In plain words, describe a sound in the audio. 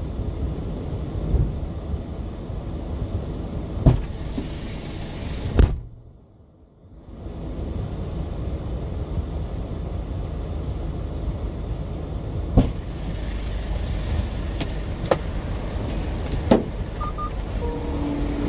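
Wind blows across the microphone outdoors in low rumbling gusts.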